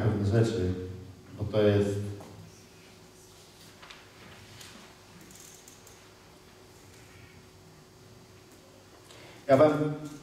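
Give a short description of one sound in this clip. A man speaks calmly into a microphone in an echoing hall, with long pauses.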